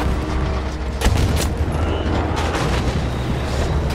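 Distant explosions boom.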